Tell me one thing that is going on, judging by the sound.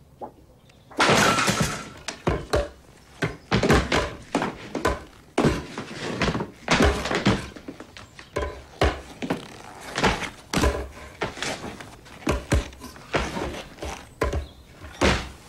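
Brooms scrape and swish across a floor.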